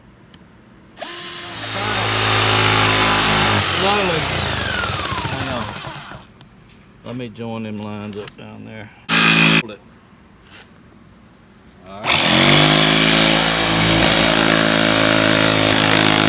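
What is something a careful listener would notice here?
An electric jigsaw buzzes loudly as it cuts through wood, starting and stopping.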